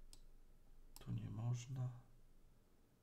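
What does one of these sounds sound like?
A man speaks briefly and calmly into a microphone, close by.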